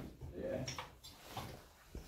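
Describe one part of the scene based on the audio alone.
A ladder rattles as a man climbs it.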